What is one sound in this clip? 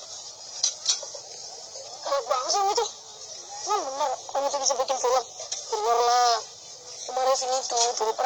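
A boy talks.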